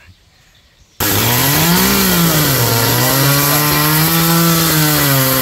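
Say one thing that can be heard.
A chainsaw roars loudly close by, its engine revving up and down.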